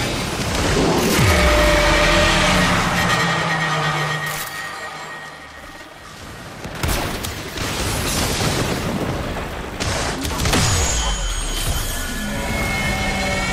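Energy weapons fire in crackling bursts.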